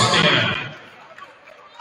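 A volleyball is struck hard in a large echoing gym.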